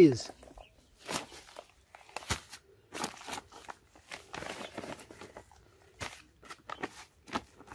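Loose soil crumbles and scrapes.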